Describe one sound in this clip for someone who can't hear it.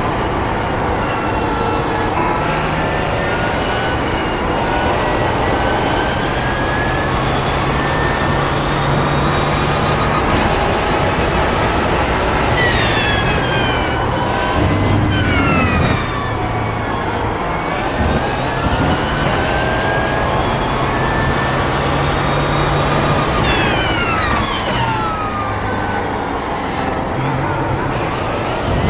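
A racing car engine roars loudly, rising in pitch as it accelerates and dropping sharply on each gear change and braking.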